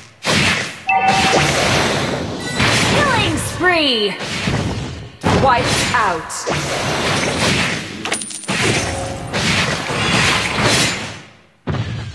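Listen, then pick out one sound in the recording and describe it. Sword strikes and magic blasts clash in a game fight.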